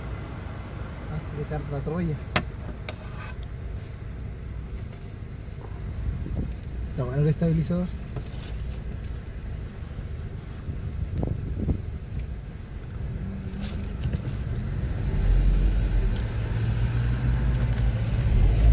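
A car engine hums low and steady, then grows louder as it pulls away.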